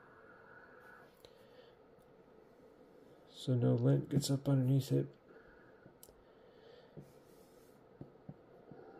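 Fingers tap and press on a phone, making faint soft clicks.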